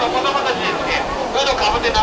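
Water splashes as a dolphin swims through a pool.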